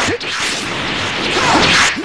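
An energy beam roars and whooshes.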